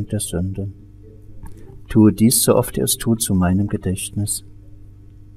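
A man speaks in a low, chanting voice nearby.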